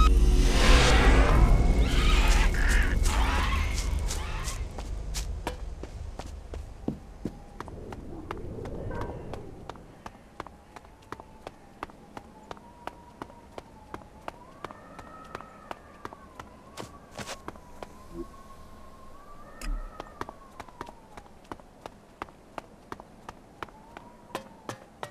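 Footsteps thud quickly and steadily.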